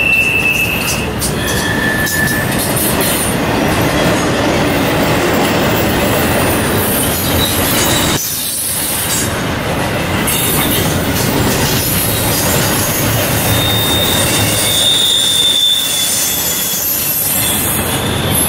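Steel wheels squeal against the rails.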